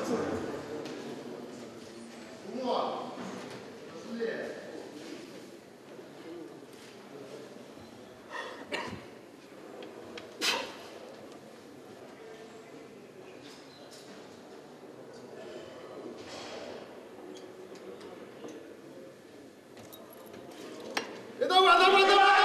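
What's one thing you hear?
A crowd of spectators murmurs softly in a large hall.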